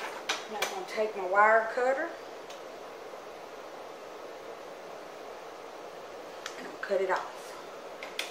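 An older woman speaks calmly close by.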